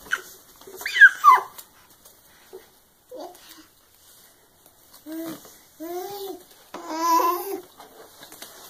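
A baby babbles and squeals close by.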